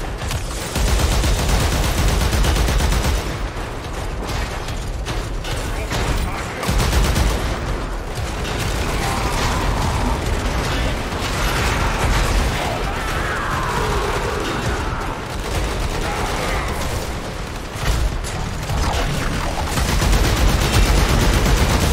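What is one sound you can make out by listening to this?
Energy blasts crackle and zap.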